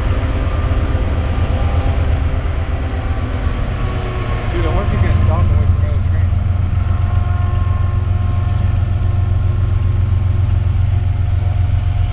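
Diesel freight locomotives rumble under load in the distance.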